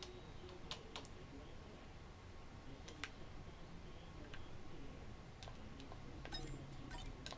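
A game menu gives short soft clicks as its tabs change.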